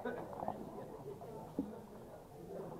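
Dice clatter out of a cup onto a backgammon board.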